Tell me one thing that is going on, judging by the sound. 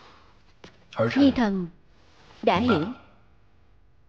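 A man speaks loudly and tensely, close by.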